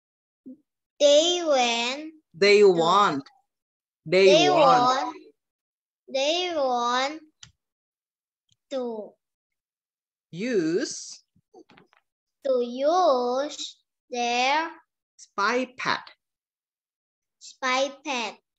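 A woman speaks slowly and clearly over an online call, in short phrases with pauses.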